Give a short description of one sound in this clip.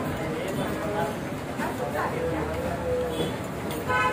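A metal spoon clinks against a steel cup.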